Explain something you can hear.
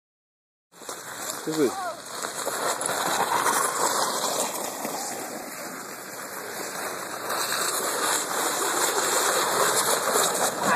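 A sled slides and scrapes over snow.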